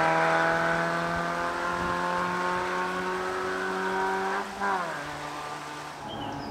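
A car engine roars loudly as it speeds away, then shifts gear and fades into the distance.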